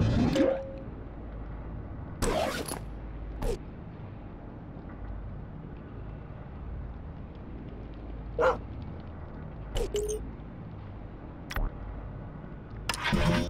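Short electronic swooshes and chimes sound as game menus open and close.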